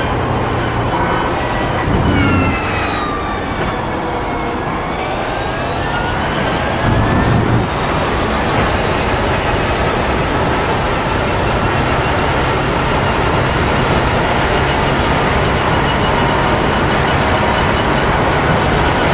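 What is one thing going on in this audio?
A racing car engine drops in pitch as the car slows, then roars and climbs steadily in pitch as the car speeds up.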